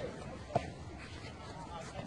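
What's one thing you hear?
A tennis ball is struck with a racket.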